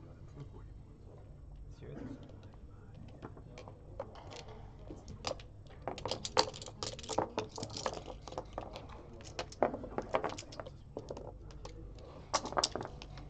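Backgammon checkers click and clack as they are moved and stacked on a board.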